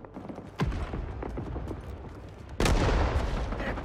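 Footsteps thud on a hard floor and stairs.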